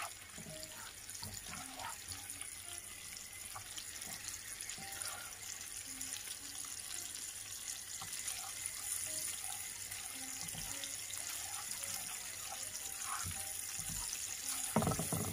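A spatula scrapes softly across a pan.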